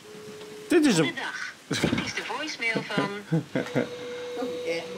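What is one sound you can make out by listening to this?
A man talks with animation over a phone's loudspeaker.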